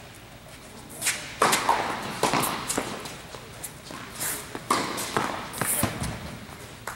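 A tennis ball is struck hard with a racket, echoing around.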